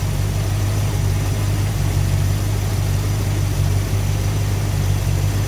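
A car engine idles with a steady, low rumble close by.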